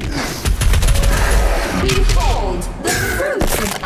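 A heavy gun fires loud booming blasts.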